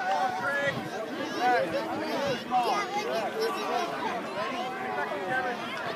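A crowd of spectators chatters and calls out nearby outdoors.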